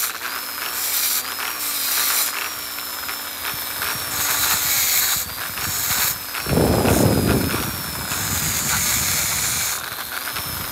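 A small rotary tool whines steadily at a high pitch.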